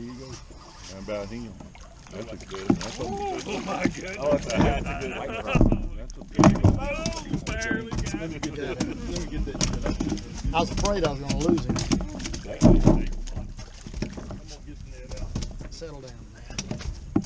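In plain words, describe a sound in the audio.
Several men talk and laugh casually close by, outdoors.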